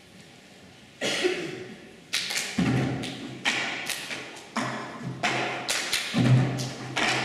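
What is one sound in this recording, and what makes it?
Children rhythmically bang plastic cups on tables.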